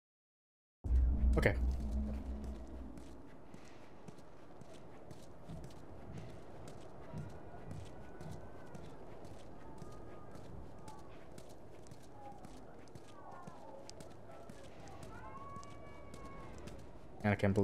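Footsteps walk steadily on hard ground.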